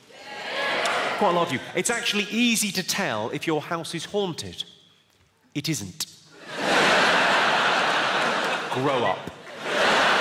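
A man speaks with animation into a microphone before a large audience.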